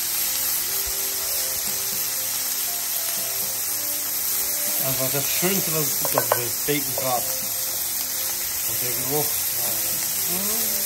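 Bacon sizzles loudly in a hot pan.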